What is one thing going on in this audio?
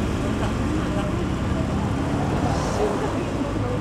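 Police motorcycles rumble by.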